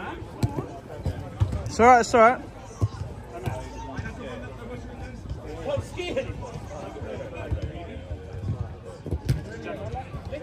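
A football is kicked with dull thuds.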